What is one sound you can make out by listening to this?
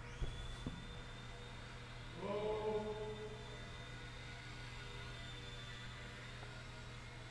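A small electric propeller whines steadily in a large echoing hall.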